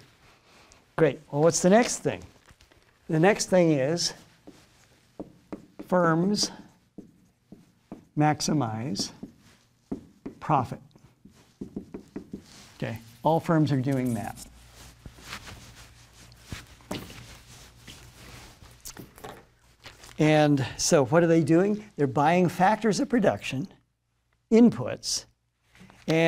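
An older man speaks calmly into a clip-on microphone, in bursts with pauses.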